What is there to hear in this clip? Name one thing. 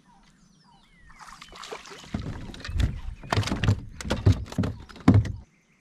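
A fishing reel whirs as a line is reeled in quickly.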